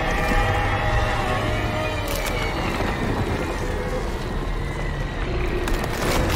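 A gun fires with energy blasts.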